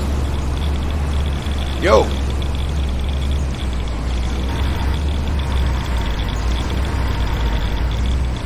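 Electricity crackles and buzzes steadily.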